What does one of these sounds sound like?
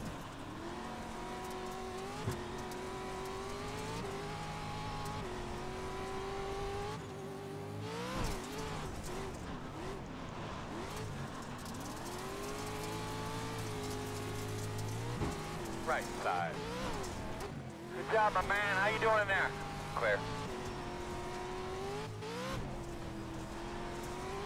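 A racing car's engine drones and revs steadily.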